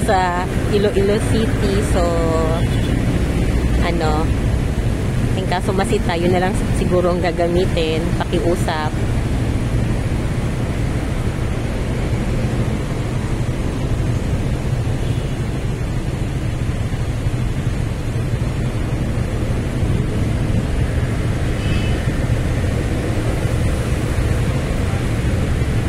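A motorcycle engine idles close by with a low rumble.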